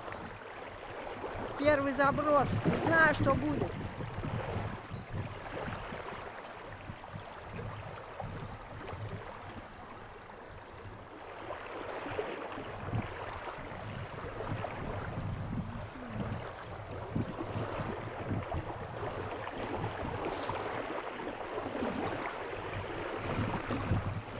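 Small waves lap gently against a stony shore.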